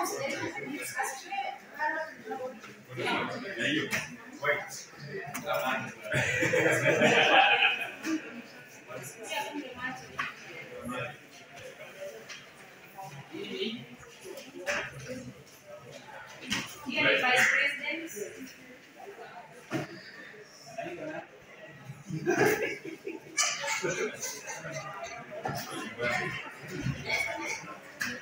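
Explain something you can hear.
A crowd of men and women murmur and talk in a large room.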